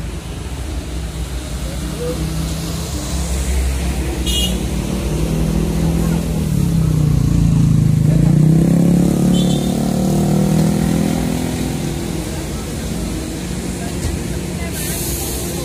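A large bus engine rumbles as the bus pulls up close and idles.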